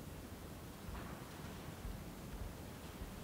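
Footsteps tap on a hard floor in a large, echoing room.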